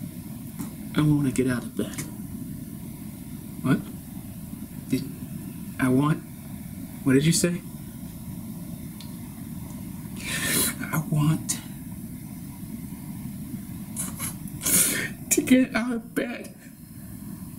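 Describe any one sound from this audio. A man speaks slowly and intensely, close to a microphone, with long pauses.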